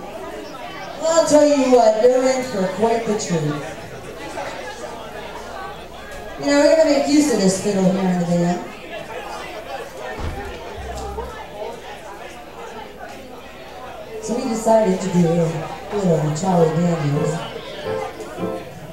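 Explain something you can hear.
A woman sings loudly into a microphone through loudspeakers.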